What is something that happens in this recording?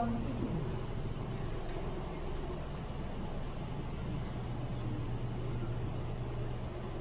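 A fan hums steadily.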